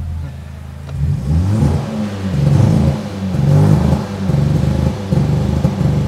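A car engine revs hard in quick, bouncing bursts.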